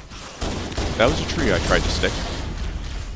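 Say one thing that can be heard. A man speaks into a microphone with animation.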